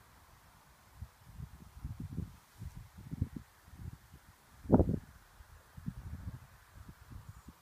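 Wind gusts rumble against the microphone outdoors.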